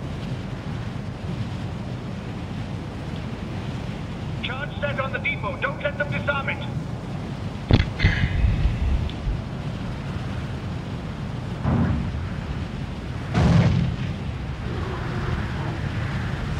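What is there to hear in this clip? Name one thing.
Wind rushes steadily past during a glide through the air.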